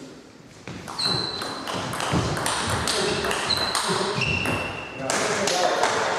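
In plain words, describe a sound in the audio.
Sports shoes squeak sharply on a wooden floor.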